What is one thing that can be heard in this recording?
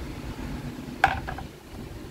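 A speaker grille taps lightly against wood.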